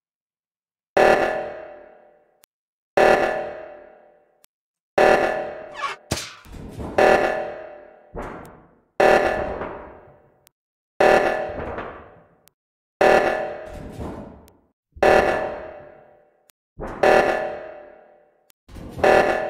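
A loud alarm blares in repeating bursts about every two seconds, each fading away.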